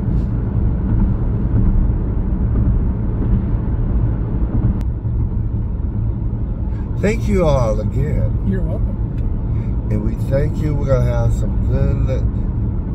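A car engine hums steadily with road rumble.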